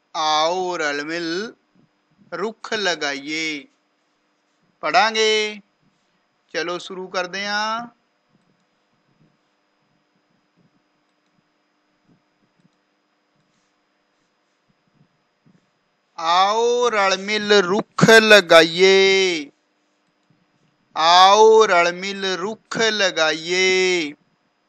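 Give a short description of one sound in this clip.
A man reads out in a clear, measured voice close to a microphone.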